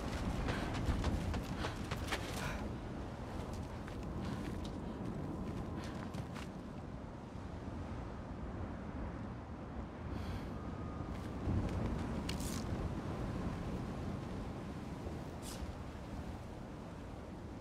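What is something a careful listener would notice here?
Footsteps crunch on snow and stone.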